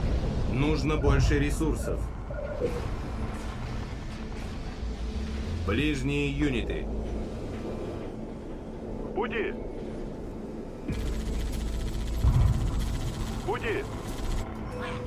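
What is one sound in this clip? A low electronic hum and rumble of game sound plays steadily.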